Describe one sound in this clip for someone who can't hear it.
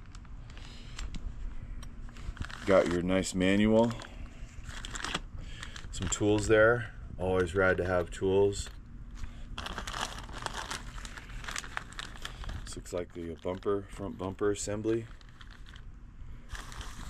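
Plastic bags crinkle and rustle in hands.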